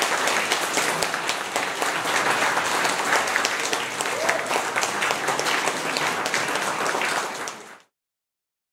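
An audience applauds in a small hall.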